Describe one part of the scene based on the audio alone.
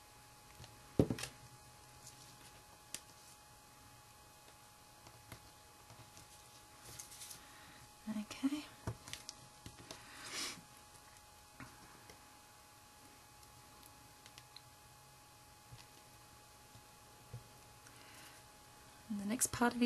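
Fingers tap and press on a table.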